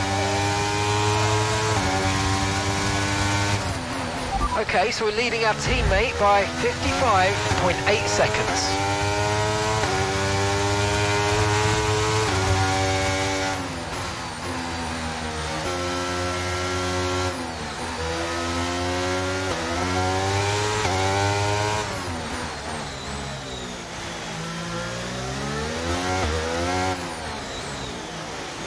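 A racing car engine screams at high revs, rising and falling in pitch as gears shift.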